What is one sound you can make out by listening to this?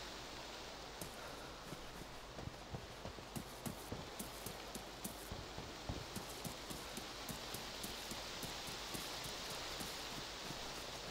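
Footsteps run quickly over ground and grass.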